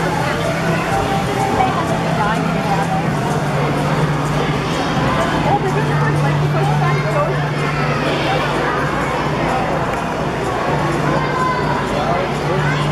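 A large crowd of people chatters throughout a big echoing hall.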